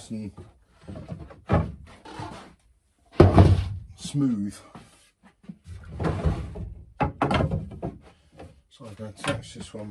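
Wooden boards knock and clatter against each other.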